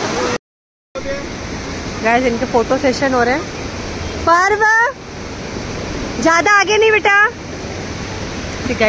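A river flows fast and roars steadily.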